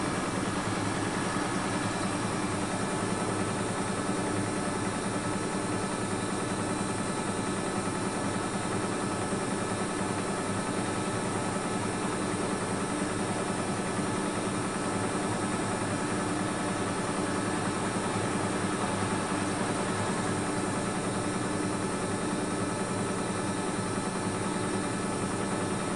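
A washing machine drum turns with a steady low hum.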